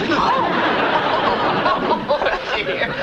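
Several adults laugh loudly together.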